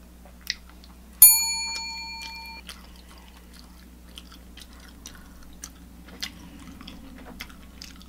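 A woman chews food wetly, close to a microphone.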